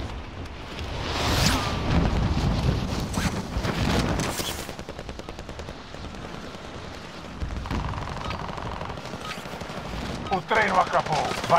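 Wind rushes loudly past during a fast fall through the air.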